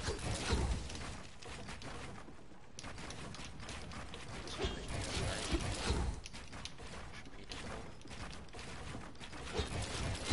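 Footsteps patter quickly on wooden ramps.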